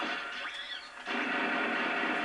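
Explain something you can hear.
An explosion booms from a video game.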